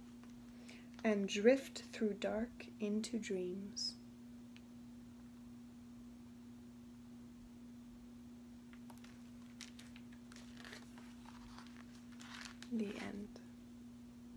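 A young woman reads aloud calmly, close by.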